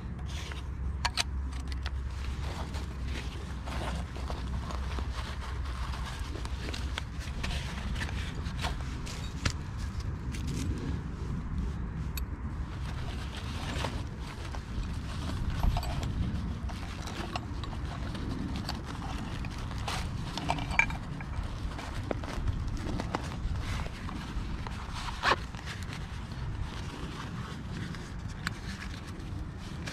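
Wind rumbles softly outdoors.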